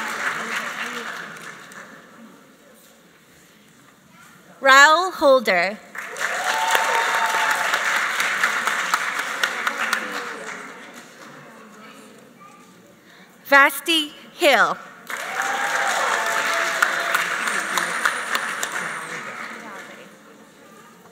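Applause rises and fades in waves in a large echoing hall.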